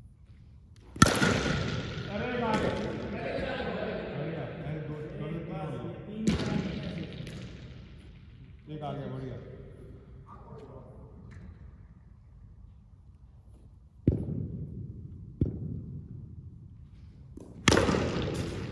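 A cricket bat strikes a ball with a sharp crack in a large echoing hall.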